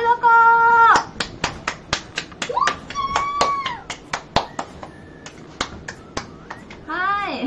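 A young woman claps her hands rapidly.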